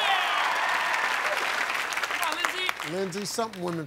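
A studio audience claps and cheers loudly.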